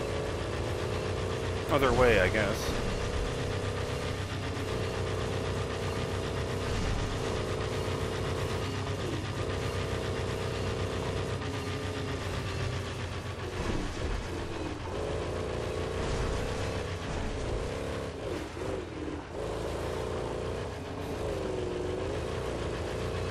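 Tyres rumble over loose dirt and gravel.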